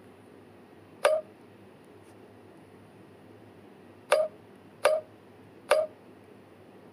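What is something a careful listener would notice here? Short electronic game sounds blip a few times.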